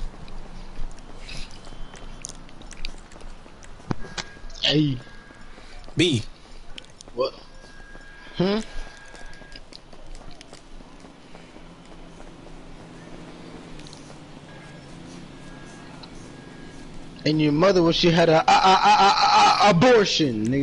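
Footsteps patter steadily on pavement.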